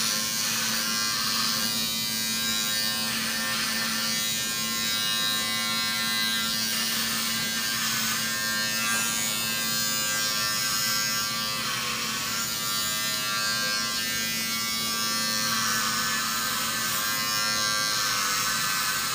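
Electric hair clippers buzz steadily close by.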